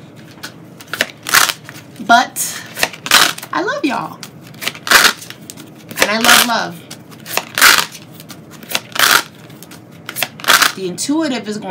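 A deck of cards is shuffled by hand in quick, rustling bursts.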